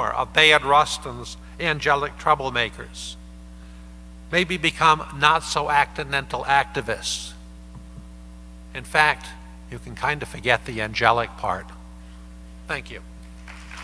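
An older man speaks through a microphone in a large hall.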